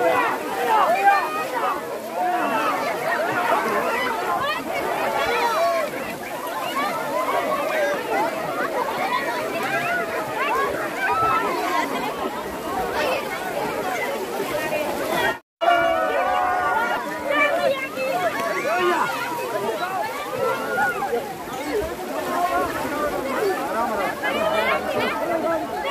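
A large crowd of men and women shout and cheer loudly outdoors.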